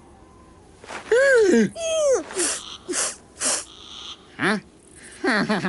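A small cartoon creature squeaks and chatters in a high, comic voice.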